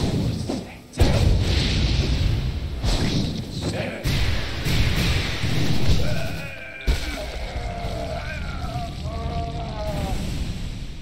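Bursting blasts whoosh and crackle.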